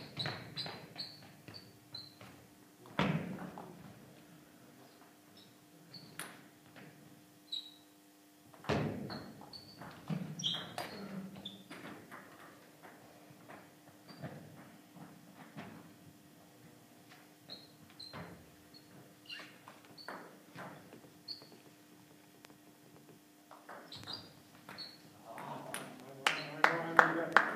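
A ping-pong ball clicks back and forth across a table in a large echoing hall.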